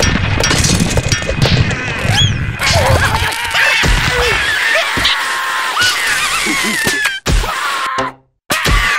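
Small creatures chatter and squeal in high, squeaky voices.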